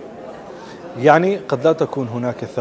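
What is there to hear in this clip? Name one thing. A young man speaks calmly into a microphone, heard over a broadcast link.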